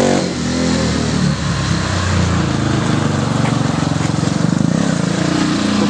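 A small engine roars loudly and revs.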